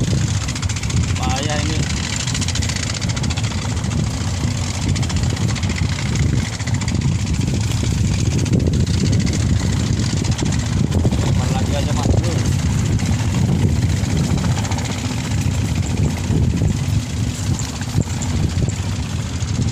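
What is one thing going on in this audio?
A middle-aged man talks close by, outdoors.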